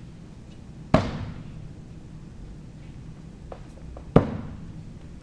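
Axes thud hard into a wooden target.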